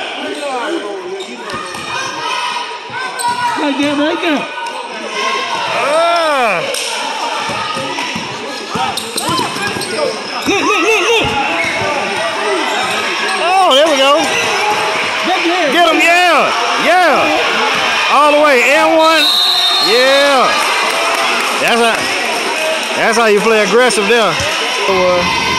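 Sneakers squeak sharply on a gym floor, over and over.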